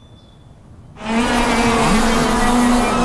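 Kart tyres hiss over snow.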